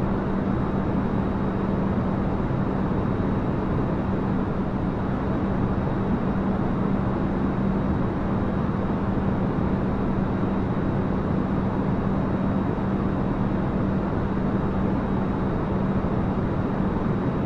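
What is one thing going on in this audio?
Jet engines roar steadily with a low, constant hum.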